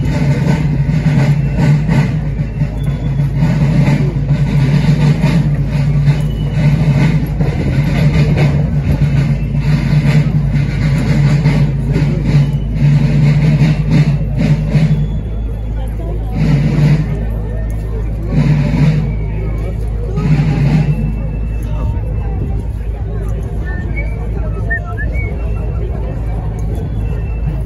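A crowd of onlookers murmurs along the roadside.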